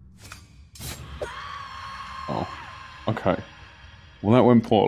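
A fantasy combat sound effect rings out as a blow lands.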